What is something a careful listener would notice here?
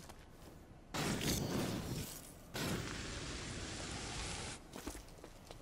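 Bursts of fire whoosh and crackle.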